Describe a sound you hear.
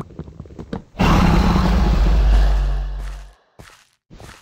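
A bed breaks with a loud, rumbling crash.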